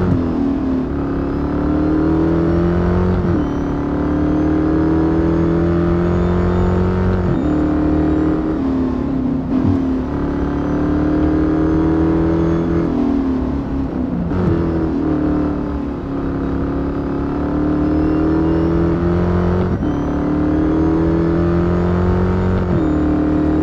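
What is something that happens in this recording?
A car engine roars loudly, rising in pitch as it speeds up and dropping sharply at each gear change.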